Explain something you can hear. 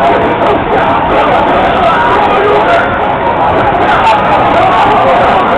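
Loud fighting game music plays from an arcade machine's loudspeaker.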